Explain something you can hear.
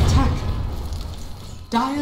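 Spell effects crackle and whoosh during a fight.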